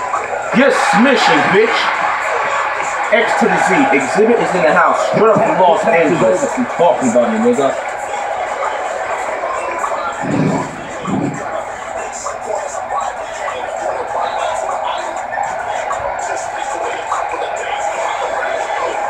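A crowd cheers and roars from a television speaker.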